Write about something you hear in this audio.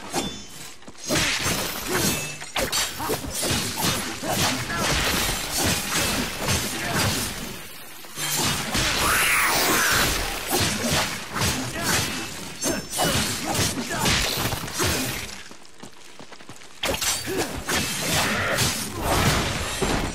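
Swords clash and slash rapidly in a fierce fight.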